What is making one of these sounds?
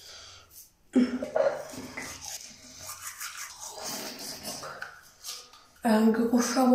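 A toothbrush scrubs rapidly against teeth.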